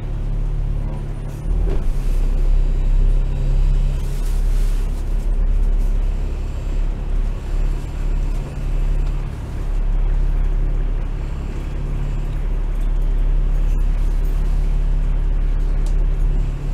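City traffic rumbles nearby.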